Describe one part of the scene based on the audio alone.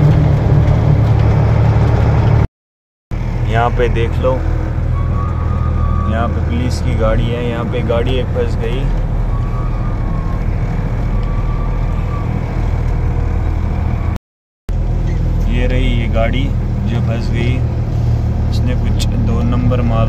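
A large vehicle's engine rumbles steadily, heard from inside the cab.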